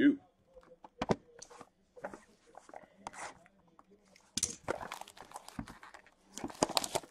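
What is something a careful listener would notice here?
Cardboard boxes knock, slide and scrape against each other.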